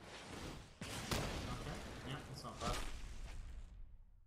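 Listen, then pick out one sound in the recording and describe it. A fiery spell effect whooshes and crackles in a card game.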